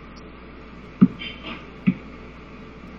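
Short electronic menu blips sound.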